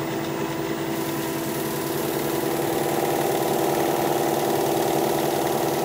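Sandpaper rubs against spinning wood with a soft hiss.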